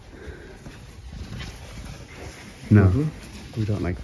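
A hand rubs across a rough wooden panel.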